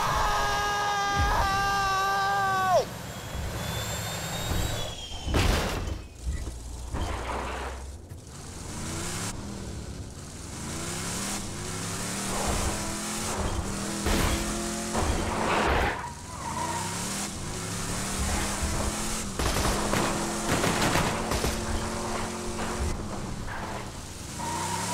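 A vehicle engine hums and revs as it drives over rough ground.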